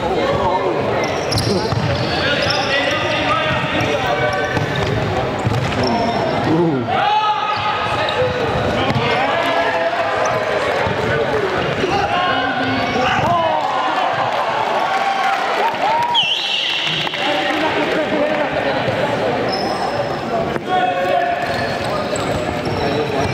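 A crowd of young people cheers and shouts loudly in an echoing indoor hall.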